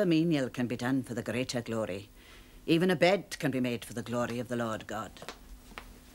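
An elderly woman speaks gravely, close by.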